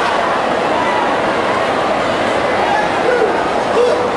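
A row of trombones plays together.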